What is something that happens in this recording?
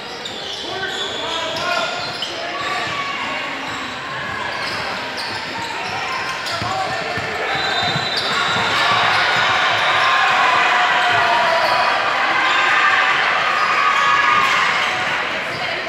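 Players call out to one another in a large echoing gym.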